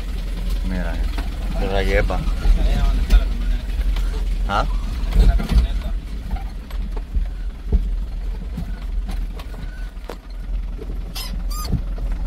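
A vehicle engine rumbles low and steady while driving slowly.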